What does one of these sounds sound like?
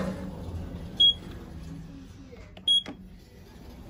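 An elevator button beeps sharply when pressed.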